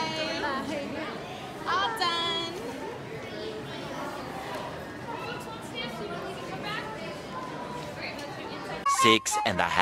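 A crowd murmurs in the background of a large echoing hall.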